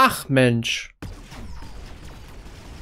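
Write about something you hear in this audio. Gunfire and small blasts crackle in a battle.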